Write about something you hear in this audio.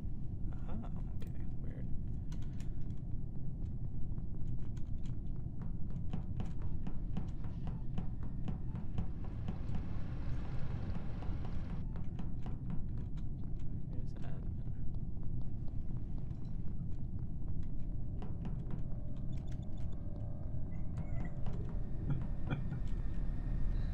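Small game footsteps patter quickly and steadily.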